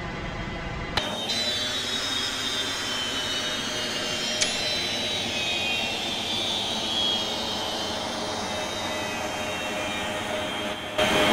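A jet airliner's engines whine steadily.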